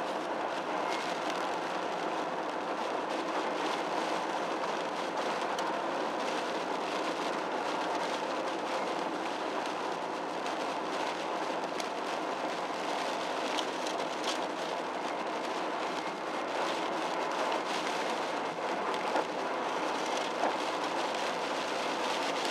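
Windscreen wipers swish across the glass.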